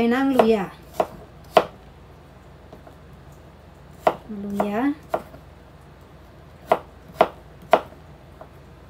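A knife chops on a wooden board with sharp knocks.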